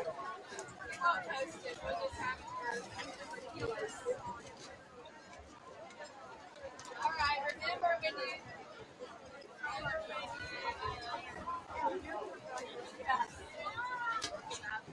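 A crowd of people talks and calls out outdoors, heard from a distance.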